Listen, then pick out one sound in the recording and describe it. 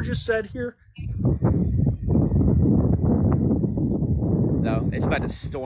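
Wind buffets a phone microphone outdoors.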